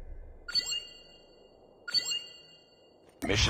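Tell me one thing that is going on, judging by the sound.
Bright electronic chimes ring twice from a video game.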